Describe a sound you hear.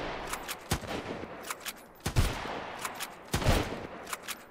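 Gunshots fire one after another at a steady pace.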